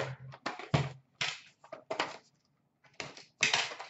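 A small cardboard box scrapes and taps as hands handle it.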